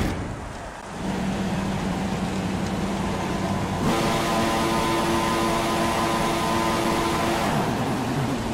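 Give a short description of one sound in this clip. Racing car engines idle with a steady, low drone.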